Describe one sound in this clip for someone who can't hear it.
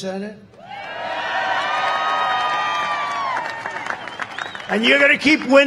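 A large crowd cheers and chants.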